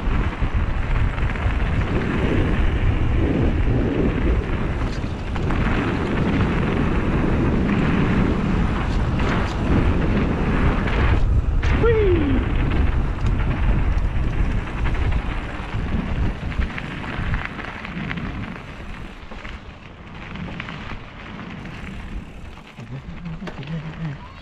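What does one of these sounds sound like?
Bicycle tyres crunch and rattle over a dirt trail.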